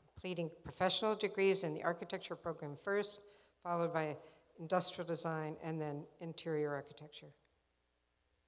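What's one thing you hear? An elderly woman speaks calmly through a microphone in a large hall.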